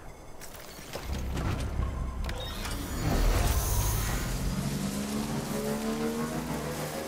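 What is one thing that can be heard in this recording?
A motorbike engine starts and revs, rising in pitch as the bike rides off.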